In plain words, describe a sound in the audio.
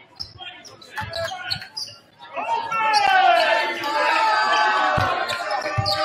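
A basketball bounces on a hardwood floor with dull thumps.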